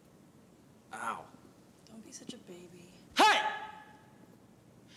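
A young man speaks briefly and quietly.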